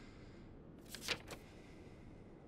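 Paper rustles as a letter is turned over.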